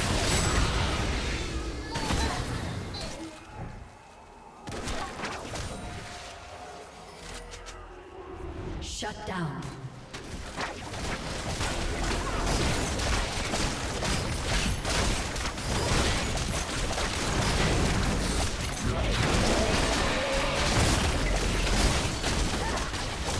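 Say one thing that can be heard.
Spells and weapons clash and explode in a fantasy battle.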